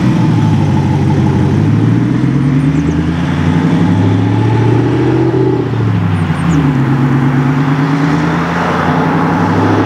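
A van drives off and moves away down a road.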